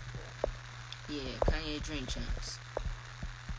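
A young woman speaks briefly and softly, close to the microphone.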